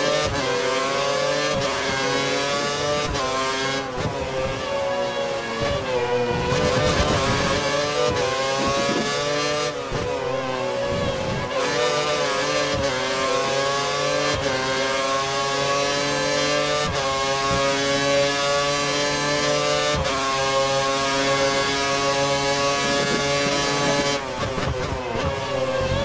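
A racing car engine screams at high revs, rising through the gears and dropping sharply when braking.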